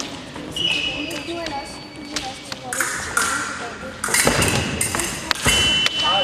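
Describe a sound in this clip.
Fencing blades clash and scrape together.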